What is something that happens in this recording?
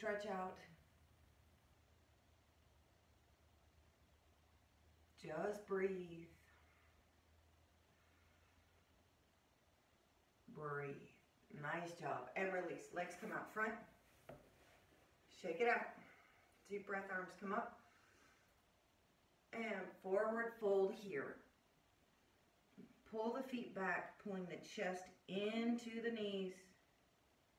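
A woman speaks calmly and gently, close to a microphone, with pauses between phrases.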